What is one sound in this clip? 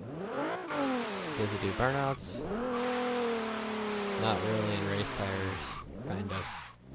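Car tyres screech as the car slides sideways.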